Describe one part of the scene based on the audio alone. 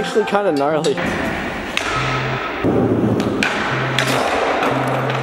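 Skateboard wheels roll over a smooth concrete floor.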